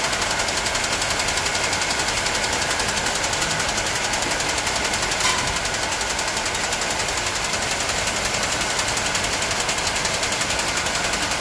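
Winding machinery whirs and rattles steadily and loudly.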